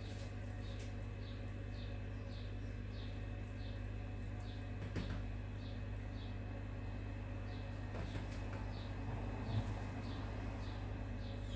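Hands press and tap soft dough pieces on a wooden board.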